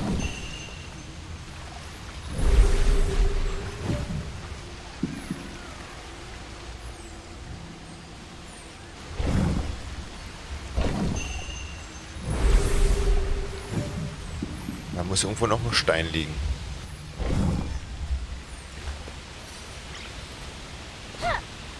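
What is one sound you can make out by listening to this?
Waterfalls rush in the distance.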